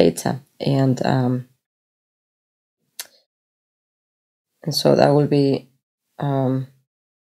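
A woman speaks calmly and close to a microphone, in short phrases.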